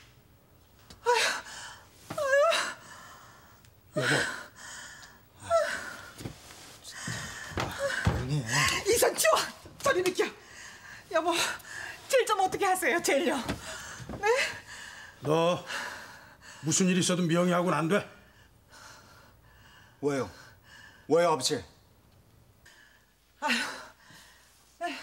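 A middle-aged woman sobs and cries out.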